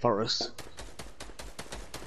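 A pickaxe swings and strikes.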